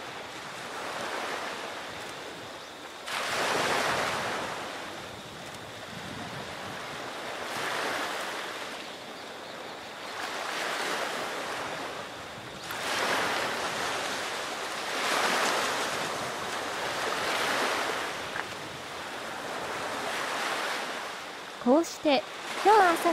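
Waves wash gently onto a shore, rising and falling in slow swells.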